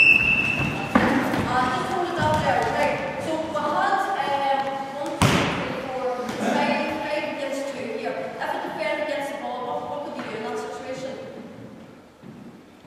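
A woman speaks loudly in an echoing hall.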